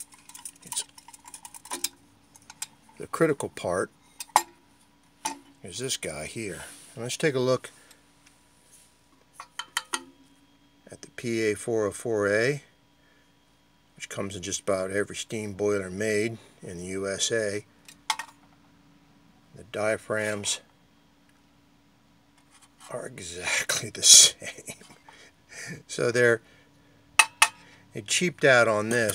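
Small metal parts clink and rattle as they are handled.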